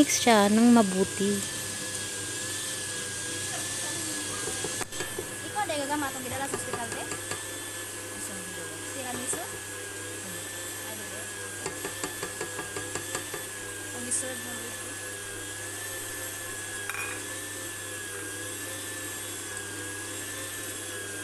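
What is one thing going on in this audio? A stand mixer whirs steadily as its beater turns.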